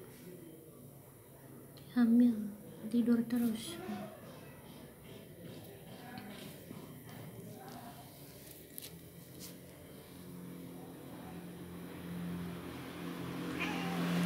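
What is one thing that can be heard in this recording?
A hand strokes a cat's fur with a soft rustle.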